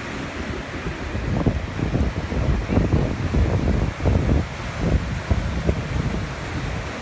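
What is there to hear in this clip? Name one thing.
Water splashes and churns around people wading in the surf.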